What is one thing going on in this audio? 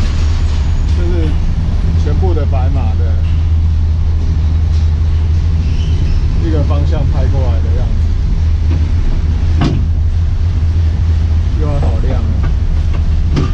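A man talks nearby in short bursts.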